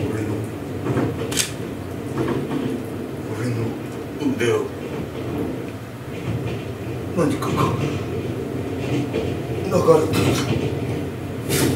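A man speaks in short bursts nearby.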